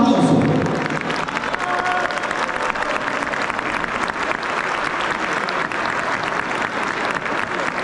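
A large crowd cheers and claps in a big echoing hall.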